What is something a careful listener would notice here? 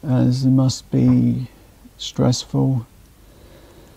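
A young man speaks casually and close to a microphone.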